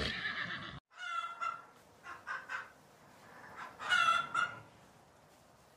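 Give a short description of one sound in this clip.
Hens cluck and cackle nearby.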